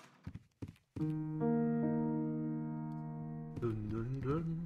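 A piano chord rings out and slowly fades.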